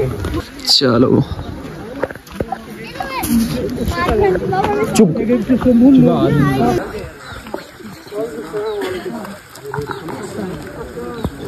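Several women and men talk and call out nearby outdoors.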